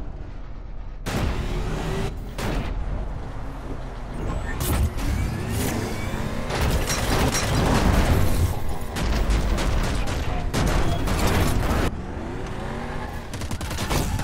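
A vehicle engine revs and whines throughout.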